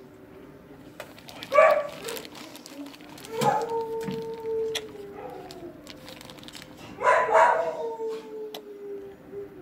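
A plastic bag crinkles as a hand rummages in it.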